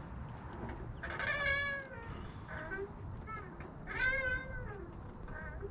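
Young children squeal and call out while swinging.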